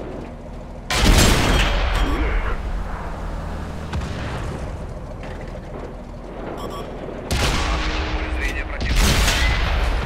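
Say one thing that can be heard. A tank cannon fires with loud booms.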